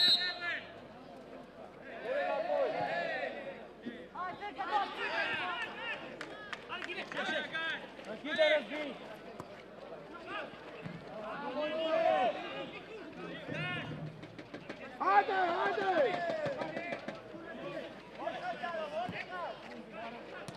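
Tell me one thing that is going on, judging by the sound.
Men shout to each other across an outdoor pitch.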